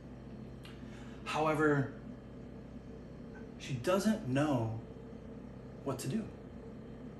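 A young man speaks calmly and clearly into a clip-on microphone, in short phrases with pauses.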